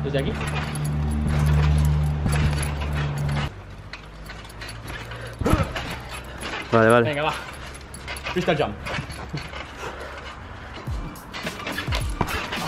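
A trampoline mat creaks and thumps as a person bounces on it.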